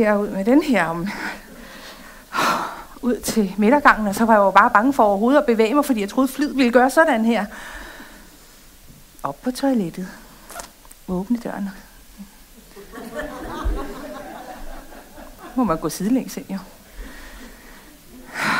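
A middle-aged woman speaks with animation, heard through a microphone in a large room.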